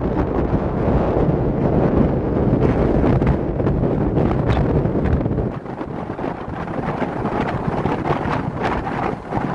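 Oncoming cars whoosh past.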